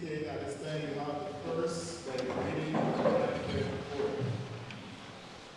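A man speaks steadily through a microphone in an echoing room.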